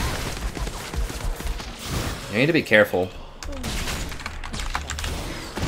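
Video game spell effects zap and crackle during a fight.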